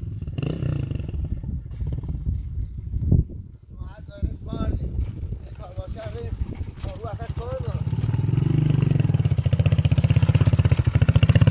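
A motorcycle engine putters closer and grows louder.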